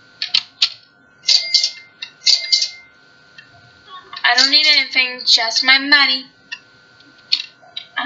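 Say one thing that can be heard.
A short game chime sounds as coins are collected.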